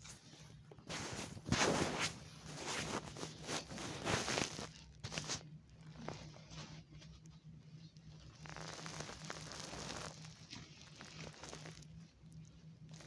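Cloth rustles and scrapes right up close.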